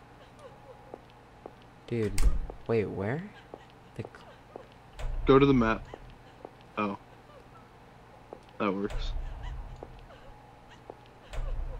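Soft footsteps tap on a hard floor.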